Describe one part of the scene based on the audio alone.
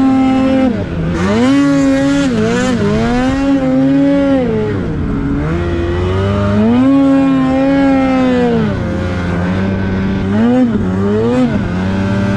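A snowmobile engine roars and revs up and down close by.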